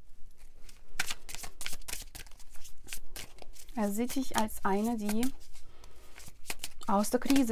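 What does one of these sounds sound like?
Playing cards are shuffled and slid together with quick, soft rustles.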